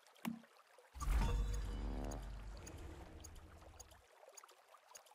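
A deep, booming reward chime swells and slowly fades.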